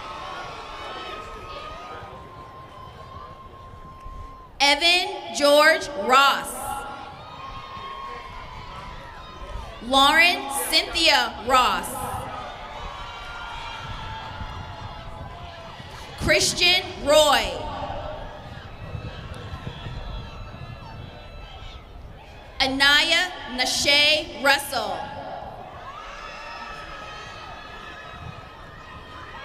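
A crowd claps and cheers outdoors.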